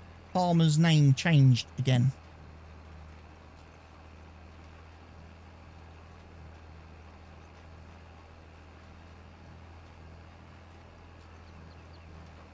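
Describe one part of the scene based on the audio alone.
A tractor engine hums steadily at a low pitch.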